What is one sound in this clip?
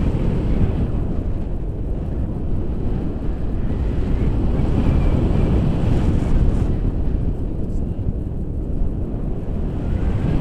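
Strong wind roars and buffets loudly throughout.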